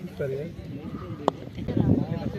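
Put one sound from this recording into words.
A cricket bat sharply strikes a ball.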